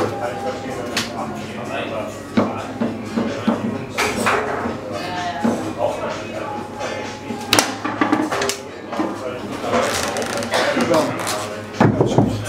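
Foosball figures strike a ball with sharp plastic clacks.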